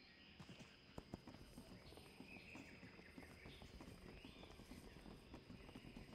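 Hooves clatter on wooden bridge planks.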